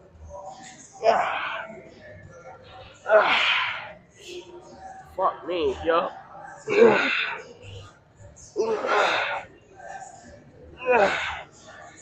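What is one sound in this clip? A young man breathes hard and grunts with effort.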